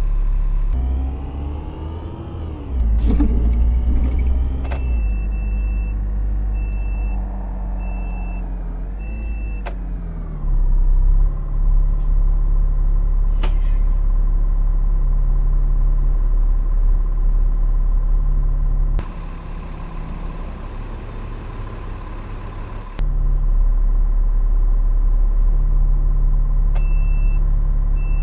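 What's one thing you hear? A bus engine hums, rising and falling in pitch as it speeds up and slows down.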